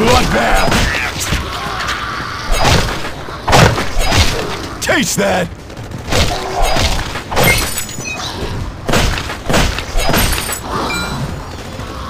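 Zombies growl and groan.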